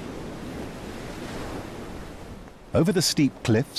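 Waves surge and crash against rocks below, outdoors in the open.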